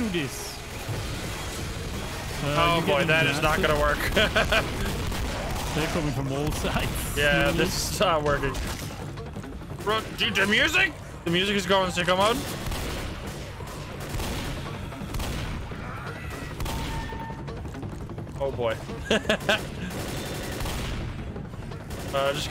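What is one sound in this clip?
Shotgun blasts fire rapidly.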